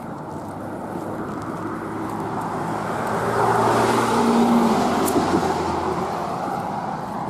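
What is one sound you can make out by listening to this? A car drives past close by, swelling and fading.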